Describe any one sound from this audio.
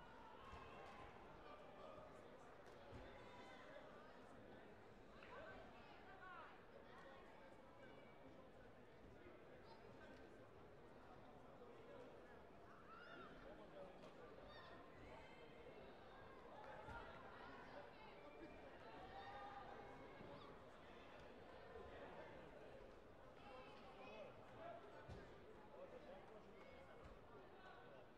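Many voices chatter throughout a large echoing sports hall.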